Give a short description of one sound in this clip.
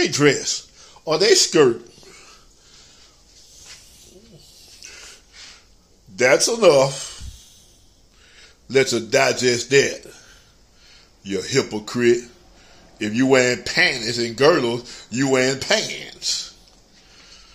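An elderly man speaks close up, in bursts with pauses, with expression.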